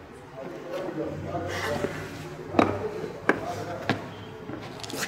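Boots step heavily on concrete.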